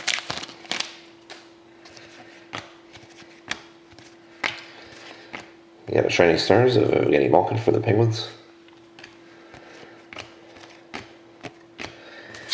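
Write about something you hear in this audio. Stiff cards slide and tap against each other as they are flipped.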